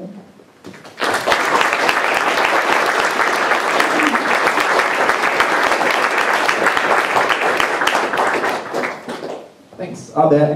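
An audience applauds loudly in a hall.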